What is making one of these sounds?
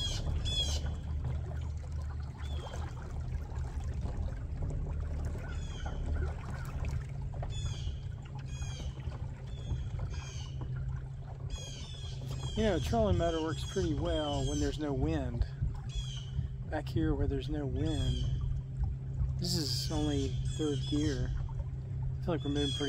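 A boat's motor hums low and steady.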